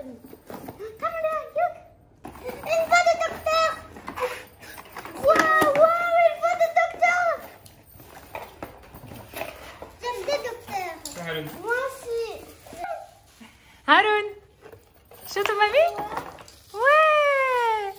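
A young child sings and talks in a high voice close by.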